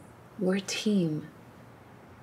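A woman speaks softly up close.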